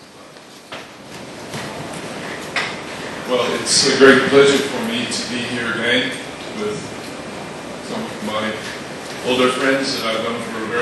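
An elderly man speaks calmly into a microphone, heard through loudspeakers.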